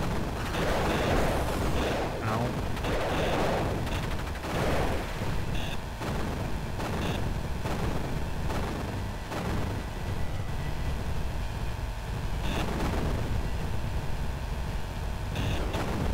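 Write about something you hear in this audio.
Game laser shots zap rapidly.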